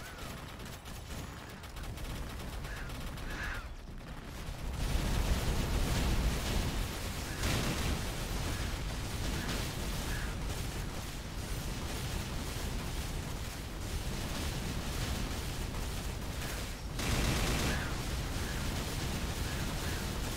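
Game attack effects burst and crackle rapidly.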